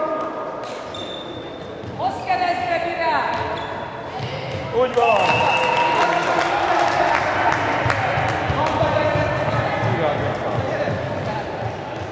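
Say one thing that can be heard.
A handball thuds as it bounces and is thrown.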